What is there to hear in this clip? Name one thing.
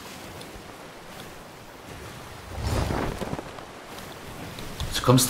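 Rough sea waves crash and roll against a wooden ship.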